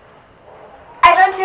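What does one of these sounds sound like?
A young woman squeals excitedly.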